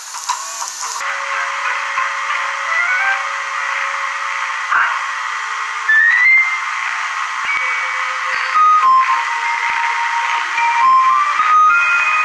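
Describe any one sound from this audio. A cheerful electronic jingle plays through a television speaker.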